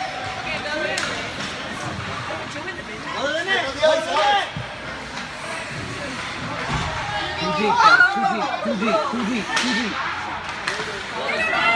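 Hockey sticks knock against a puck.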